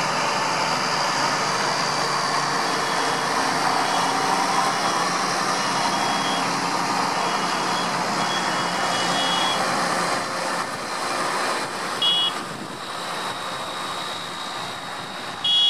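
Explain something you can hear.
Large tyres hum on a wet road.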